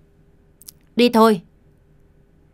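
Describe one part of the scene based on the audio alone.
A man shouts sharply and loudly nearby.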